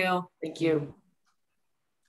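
A woman speaks briefly over an online call.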